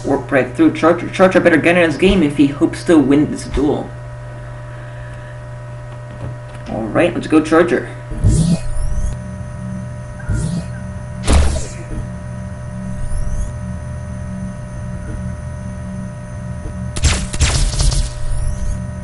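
A spacecraft engine in a video game hums steadily.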